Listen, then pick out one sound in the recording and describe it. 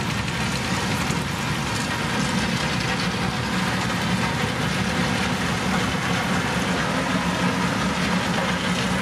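Road roller engines drone loudly close by.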